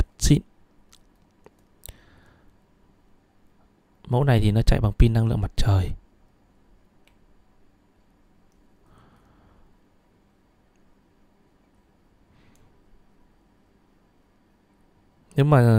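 A watch crown clicks softly as it is turned.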